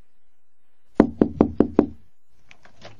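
A hand knocks on a door several times.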